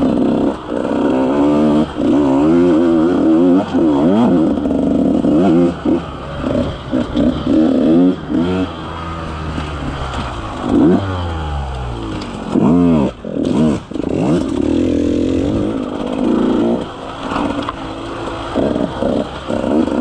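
Tyres crunch over dry leaves and twigs.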